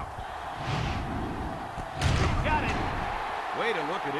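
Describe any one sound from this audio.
Football players collide in a tackle with a heavy thud.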